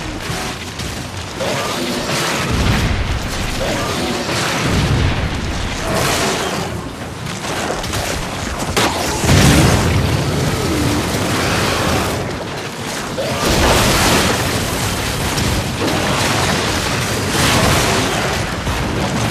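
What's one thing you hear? A jet engine roars steadily throughout.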